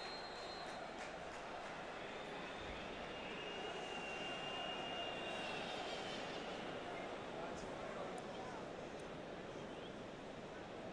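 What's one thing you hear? A large stadium crowd murmurs softly in the open air.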